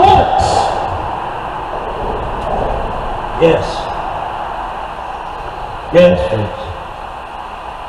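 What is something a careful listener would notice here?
A man speaks loudly to a crowd in short bursts, outdoors.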